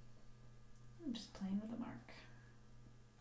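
A woman speaks briefly and quietly, close by.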